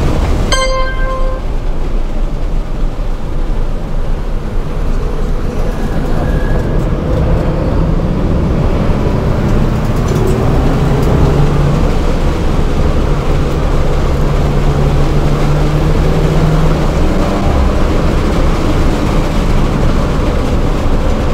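A turbocharged four-cylinder hatchback engine drones at high revs from inside the cabin.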